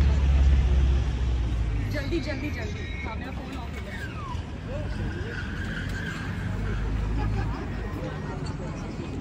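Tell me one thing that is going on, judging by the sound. A crowd of people chatter at a distance.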